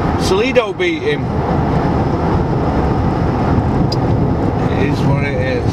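A car engine rumbles steadily inside the cabin.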